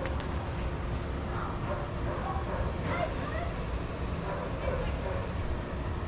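Dogs' paws pad softly on sand.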